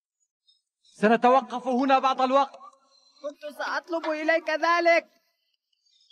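A man speaks with animation in a high cartoon voice.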